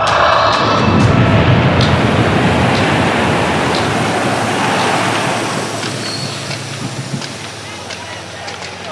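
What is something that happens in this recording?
A large crowd cheers and roars in a big echoing arena, then slowly quiets down.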